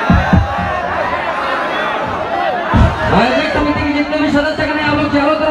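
A young man sings loudly through a microphone and loudspeakers.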